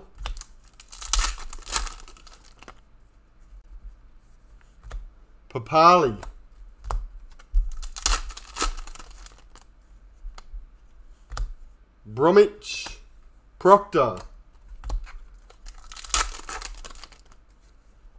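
Hands flick through a stack of trading cards.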